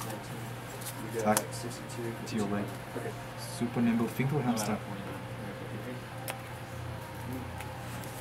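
Playing cards are placed and slid on a soft mat.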